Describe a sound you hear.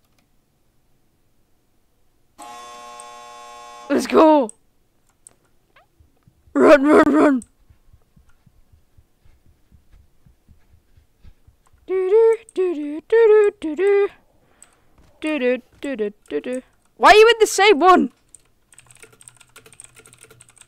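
Keys click on a computer keyboard.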